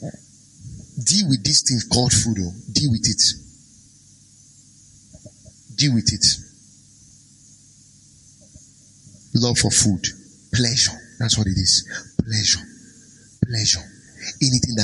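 A man speaks with emphasis into a microphone, in bursts with pauses.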